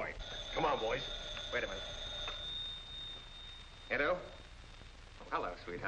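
A middle-aged man speaks briskly, in short phrases.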